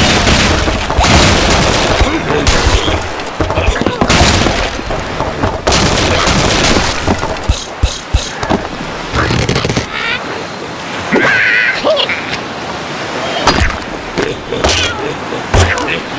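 Wooden blocks crash and clatter as a tower collapses.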